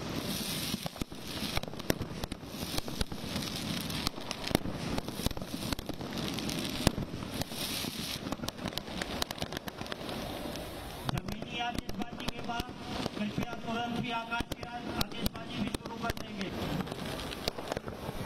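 Fireworks crackle and pop loudly outdoors.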